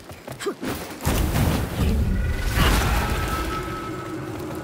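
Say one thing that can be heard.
A heavy sword slash whooshes with a crackling burst of energy.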